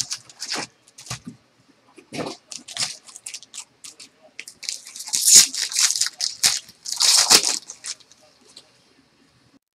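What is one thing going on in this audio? Foil card packs crinkle and rustle in hands close by.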